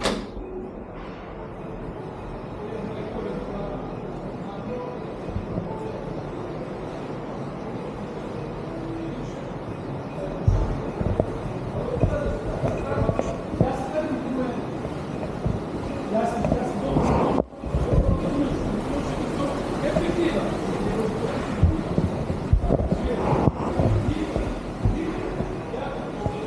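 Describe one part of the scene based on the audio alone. A young boy talks close to the microphone.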